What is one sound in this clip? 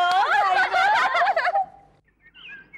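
Young women laugh loudly and merrily.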